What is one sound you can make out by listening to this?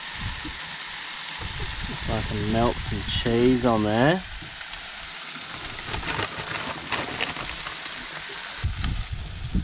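Food sizzles on a hot griddle.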